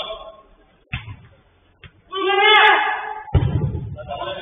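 A football thuds off a boot.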